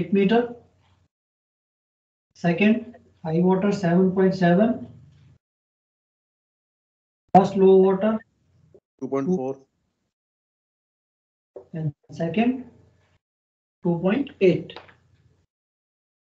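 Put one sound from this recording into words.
A man speaks calmly in short phrases, close to a microphone.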